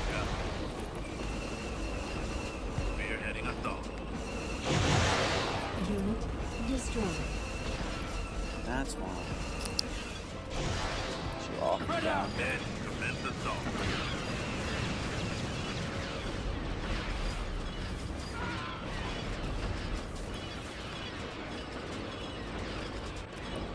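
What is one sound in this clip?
Gunfire and explosions rumble from a battle.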